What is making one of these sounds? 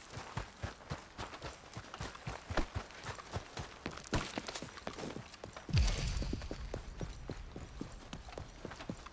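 Footsteps crunch through snow at a steady walking pace.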